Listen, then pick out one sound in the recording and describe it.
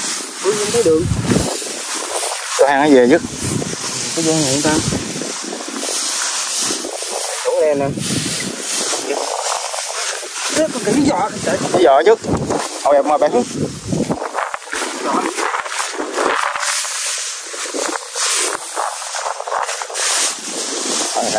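Dry straw rustles and crunches under hands and feet.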